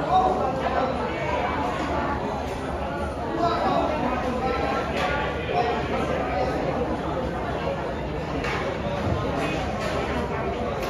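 An elderly man sings into a microphone through loudspeakers in an echoing hall.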